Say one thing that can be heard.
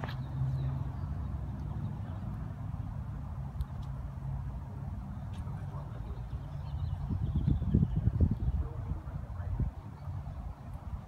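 Wind blusters across the microphone outdoors, with stronger gusts near the end.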